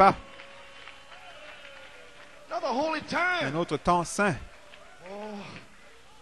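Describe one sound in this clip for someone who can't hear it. An elderly man preaches with animation through a microphone in an echoing hall.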